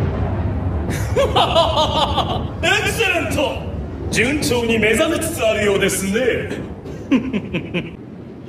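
A man speaks in a deep, menacing voice.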